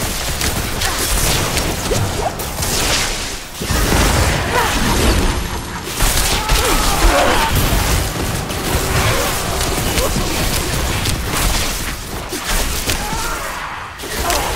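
Spells burst and crackle with magical blasts.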